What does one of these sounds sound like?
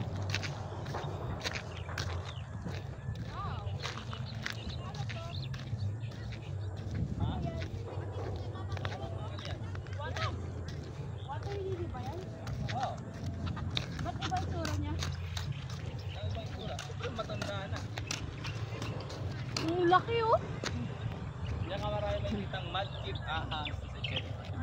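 A woman talks close by outdoors.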